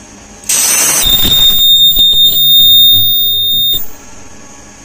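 An ultrasonic welder lets out a loud, shrill whine.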